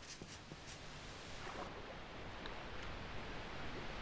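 Water splashes and swirls as someone wades in.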